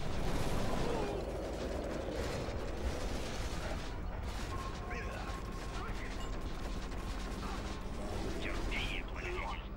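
Explosions and gunfire rumble in a battle.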